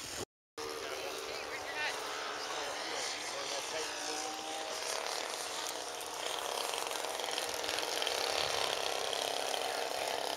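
A small model airplane engine buzzes steadily nearby, growing louder and higher toward the end.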